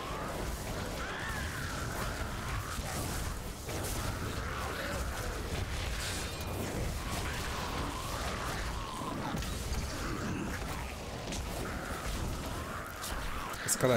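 Fiery blasts and impacts crackle in a game battle.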